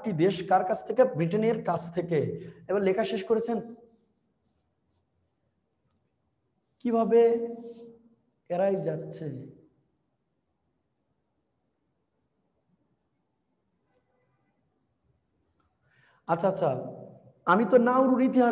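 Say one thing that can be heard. A young man lectures with animation, pausing now and then.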